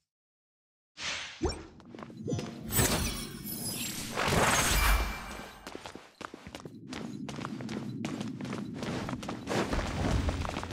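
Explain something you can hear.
Magical whooshes and thuds of a fight ring out over a low hum.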